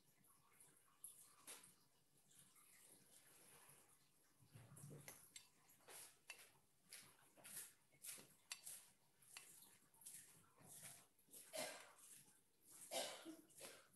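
A brush dabs and swishes softly on paper.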